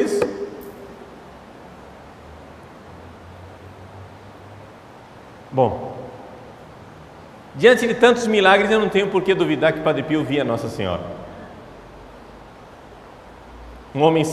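A man speaks calmly into a microphone in short phrases with long pauses, in an echoing hall.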